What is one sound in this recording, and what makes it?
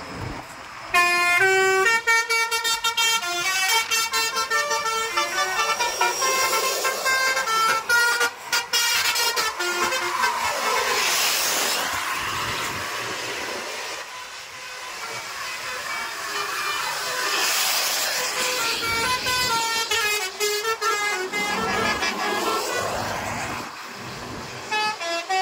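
Bus horns play quick, tuneful melodies close by.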